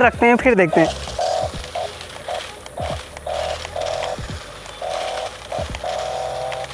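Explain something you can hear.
A toy car's motor whirs in short bursts.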